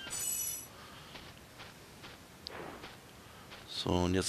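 Small footsteps patter softly on snow.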